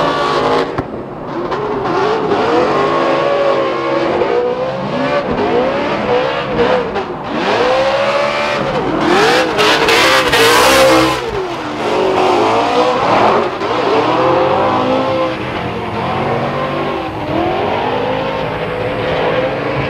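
Racing car engines rev hard and wail up and down.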